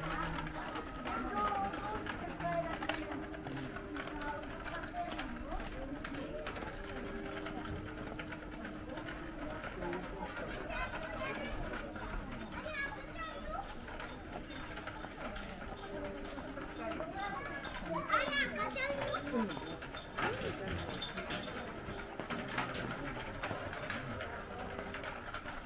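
A pushchair's small wheels rattle over paving.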